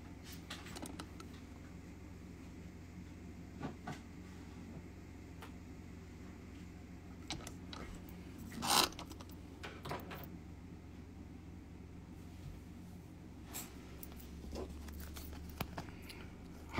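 Fingers handle a small pendant with soft taps and clicks.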